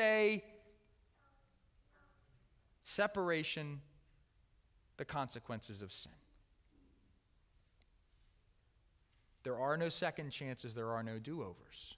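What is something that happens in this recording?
A middle-aged man speaks with animation through a microphone, in short bursts with pauses, in a large echoing hall.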